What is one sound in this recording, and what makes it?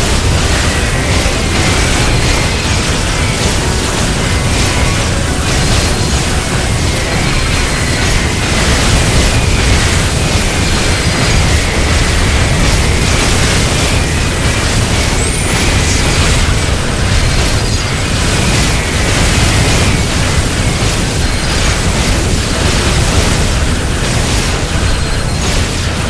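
Explosions boom repeatedly.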